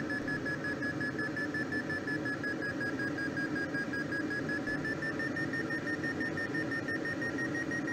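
A glider's variometer beeps quickly and steadily, its pitch slowly rising.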